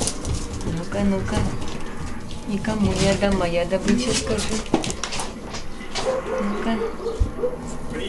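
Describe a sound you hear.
Puppies yelp and whine while playing.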